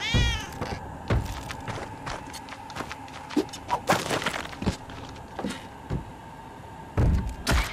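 Short retro video game sound effects blip and thump as a small character runs and jumps.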